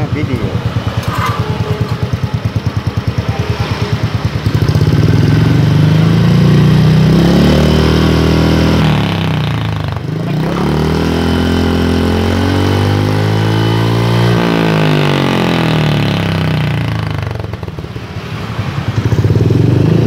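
A motorcycle engine idles with a rapid, loud putter close by.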